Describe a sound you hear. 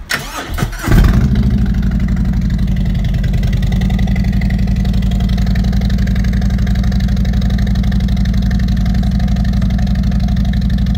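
A motorcycle engine idles close by with a deep, steady rumble.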